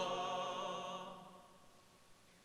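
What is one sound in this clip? A men's choir holds a final sung chord that fades away in a reverberant hall.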